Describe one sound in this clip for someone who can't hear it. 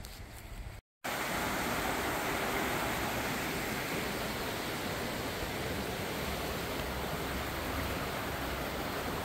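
A stream flows and rushes steadily over stones.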